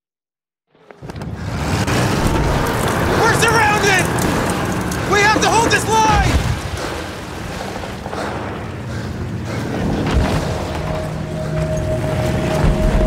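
Explosions boom and rumble in the distance.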